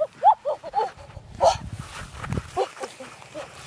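A stick scrapes and rustles through grass.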